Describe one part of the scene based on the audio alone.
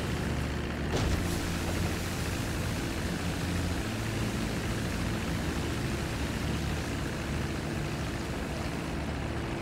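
Water sprays and hisses under a plane's floats.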